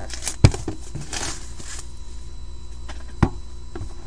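Plastic wrapping crinkles as hands handle card boxes.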